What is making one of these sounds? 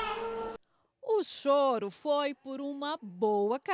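A young woman speaks to a baby in a high, sing-song voice close by.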